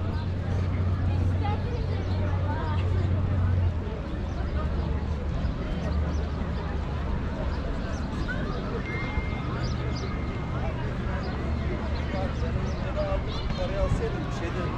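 A crowd of people chatters outdoors in the open air.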